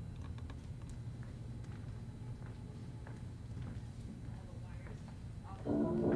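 Bare feet pad softly across a wooden stage floor.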